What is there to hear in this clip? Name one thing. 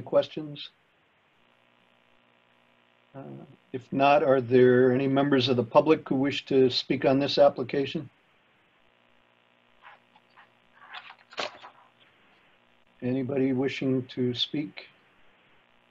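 An older man speaks calmly over an online call, in short phrases with pauses.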